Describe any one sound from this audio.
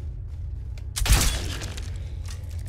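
A sword swings and strikes with a sudden loud crash.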